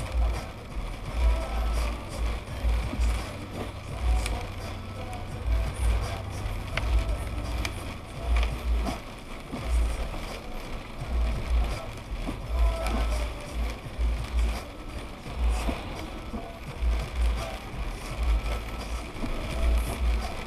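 Car tyres hiss on a wet road.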